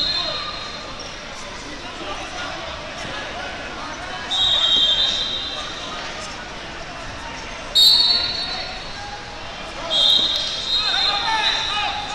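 A referee's whistle blows in short shrill blasts.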